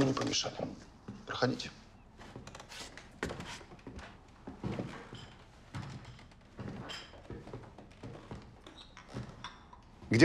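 Footsteps walk across a wooden floor.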